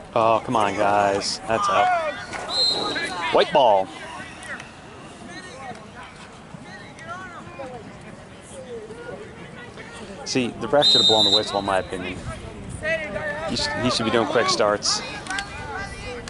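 Young men and boys shout loudly across an open field.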